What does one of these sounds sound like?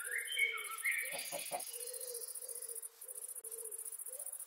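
A chicken clucks nearby.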